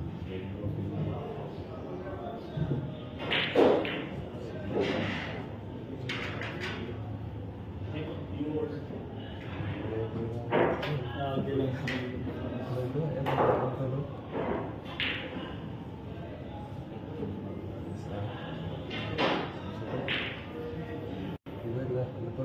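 Men talk in the background.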